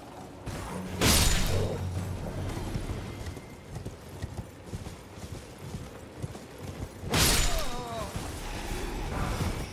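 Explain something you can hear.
A heavy blade swings and strikes with a loud whoosh.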